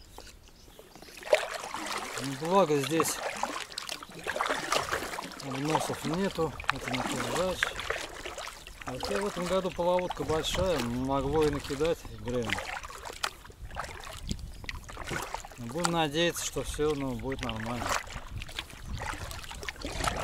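A paddle splashes and dips into water.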